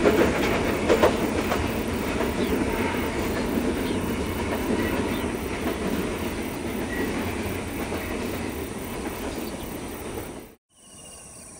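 Freight wagons rumble and clatter along the rails.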